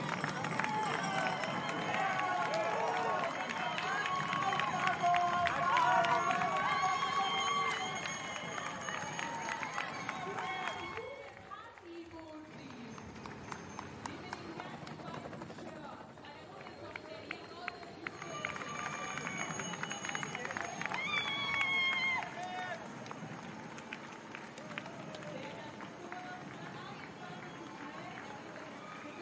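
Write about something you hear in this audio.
Runners' footsteps patter on the pavement.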